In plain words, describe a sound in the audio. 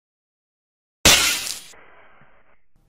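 A web shoots out with a sharp whoosh.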